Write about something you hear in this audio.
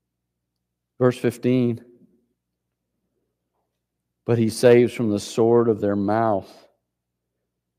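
An older man speaks calmly into a microphone.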